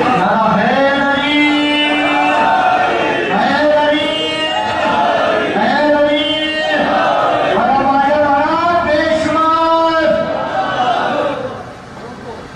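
A young man chants loudly and melodically through a microphone.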